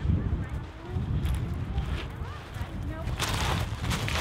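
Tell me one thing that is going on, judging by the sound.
Footsteps crunch on loose pebbles.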